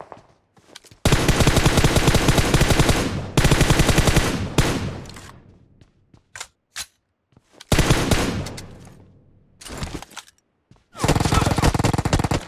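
A rifle fires rapid bursts of shots at close range.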